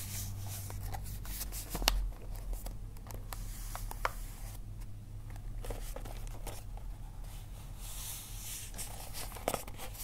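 Wrapping paper crinkles and rustles in hands.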